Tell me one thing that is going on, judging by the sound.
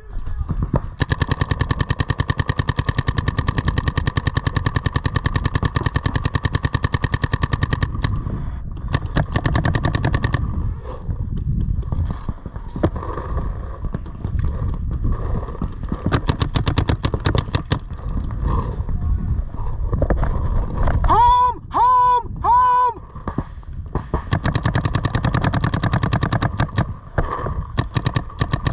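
A paintball gun fires rapid bursts of shots close by.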